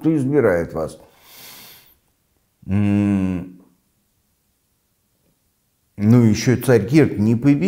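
An elderly man speaks calmly and close up, pausing between phrases.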